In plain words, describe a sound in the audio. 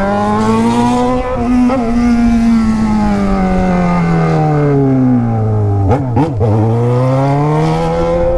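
A motorcycle engine hums and revs, its pitch falling slowly then rising again.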